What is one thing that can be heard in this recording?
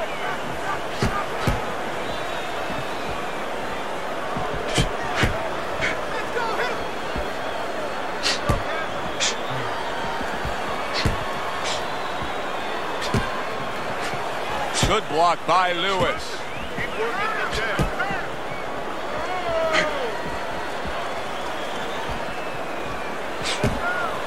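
Gloves thud in sharp punches.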